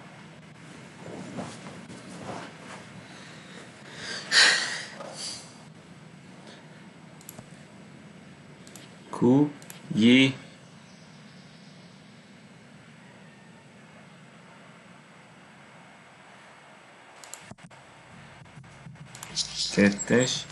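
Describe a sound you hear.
A woman talks calmly close to a microphone.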